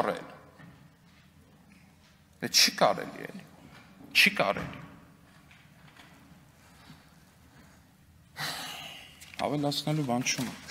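A man speaks firmly into a microphone in a large room with some echo.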